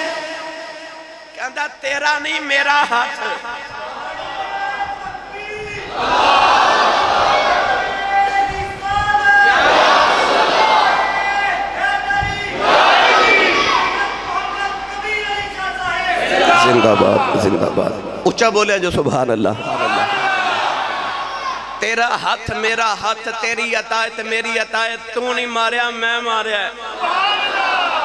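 A man chants and speaks passionately through a loudspeaker in an echoing hall.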